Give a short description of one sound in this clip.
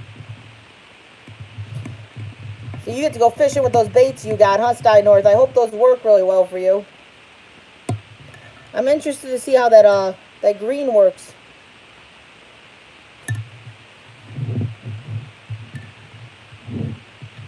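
A metal spoon scrapes and clinks against a glass jug.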